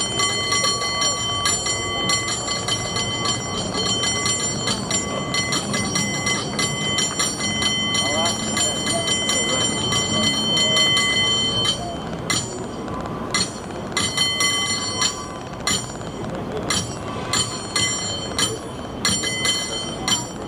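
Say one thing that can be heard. A cable car rolls slowly past with a low rumble and clatter.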